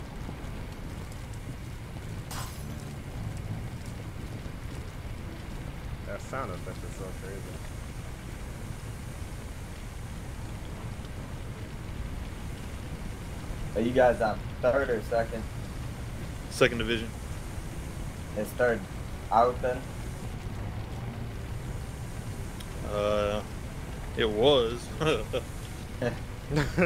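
Fire hoses spray water with a steady rushing hiss.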